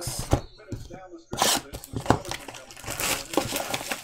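A cardboard box is handled and tapped.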